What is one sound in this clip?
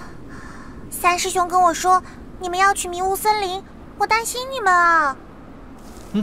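A young woman speaks softly and with worry.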